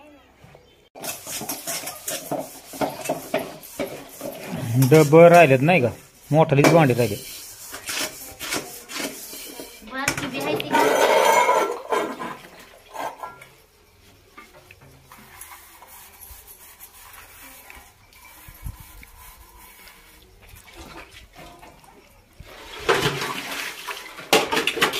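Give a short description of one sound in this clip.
Metal pots and plates clink and clatter against each other.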